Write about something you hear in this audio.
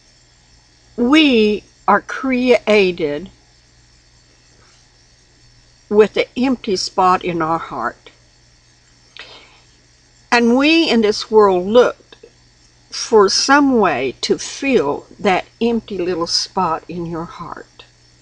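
An elderly woman speaks calmly and close to a microphone, in short bursts with pauses.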